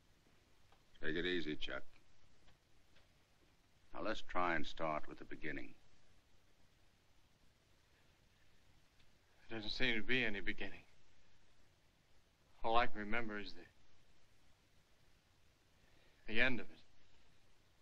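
A man speaks calmly in short, serious phrases with pauses between them.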